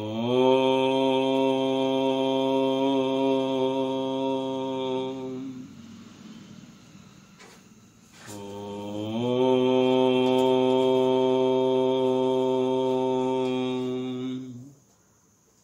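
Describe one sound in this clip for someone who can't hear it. An elderly man chants a long, steady note close to a microphone.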